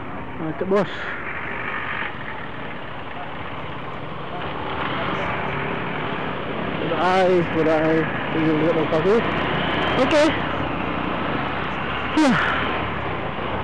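A motorcycle engine hums steadily as the bike rides along.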